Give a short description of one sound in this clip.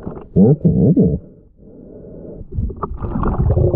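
Air bubbles from a diver's breathing gurgle and rumble underwater.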